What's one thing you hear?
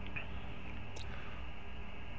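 A short menu click sounds.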